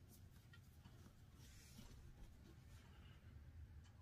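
Fabric rustles as hands smooth it down.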